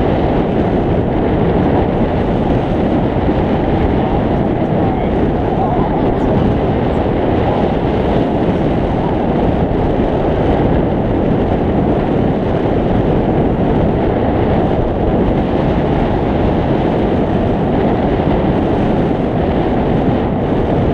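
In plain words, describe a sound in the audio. Strong wind roars and buffets steadily past a microphone.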